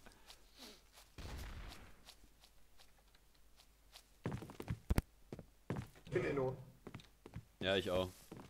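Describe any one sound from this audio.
Footsteps tap steadily on hard ground and wooden floors.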